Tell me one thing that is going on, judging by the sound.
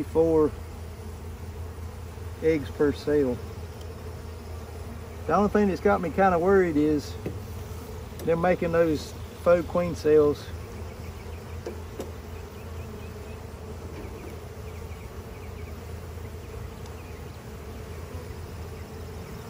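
Bees buzz in a dense, steady swarm close by.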